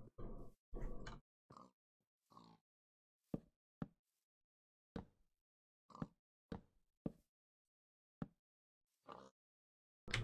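Wooden blocks are placed with short, soft knocks.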